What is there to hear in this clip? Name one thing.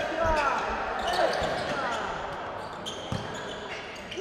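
A basketball thumps as it bounces on the court.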